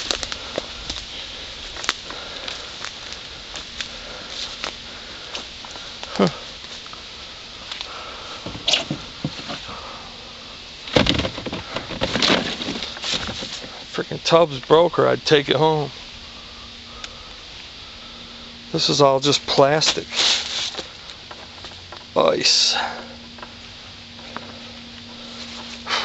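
Footsteps crunch through dry leaves on the ground.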